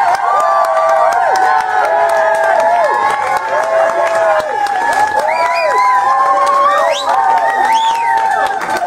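A live band plays loud music.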